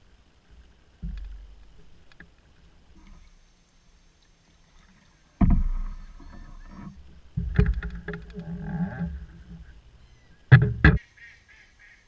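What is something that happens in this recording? A paddle splashes and dips in calm water.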